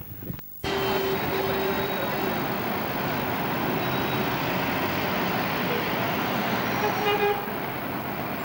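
Vehicle horns honk now and then.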